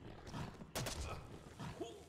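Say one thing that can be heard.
A sword swings and strikes with a sharp whoosh.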